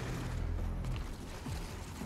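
An electric arc crackles and buzzes.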